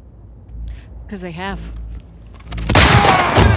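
A young woman speaks flatly.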